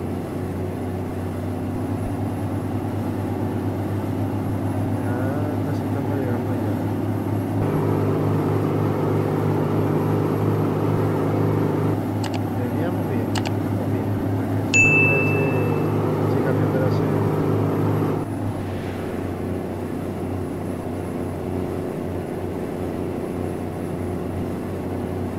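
A bus engine hums steadily and grows louder for a while.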